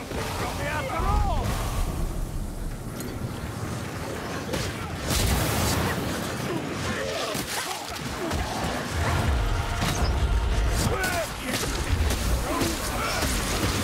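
Monsters snarl and growl as they attack.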